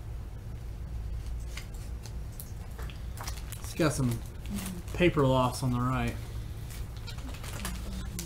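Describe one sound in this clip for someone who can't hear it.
Cards rustle and tap softly as hands handle them.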